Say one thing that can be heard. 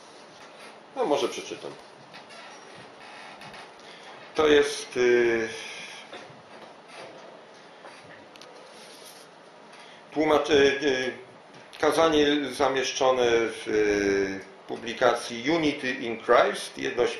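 An elderly man reads aloud calmly, with long pauses.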